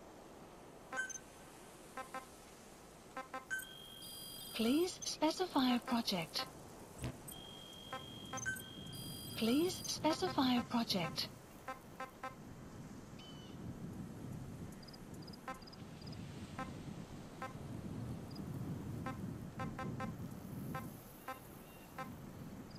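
Short electronic menu blips and clicks sound as selections change.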